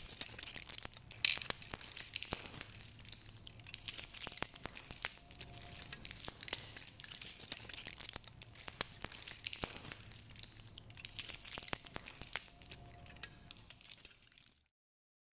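Dried beans rattle and click as they shift in cupped hands.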